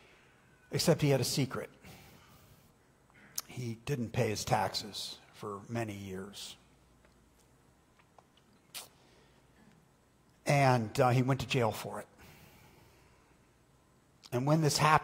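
A man speaks slowly and calmly through a microphone, with pauses, in a large echoing hall.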